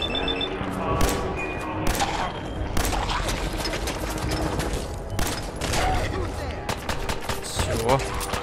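Gunshots crack in sharp bursts.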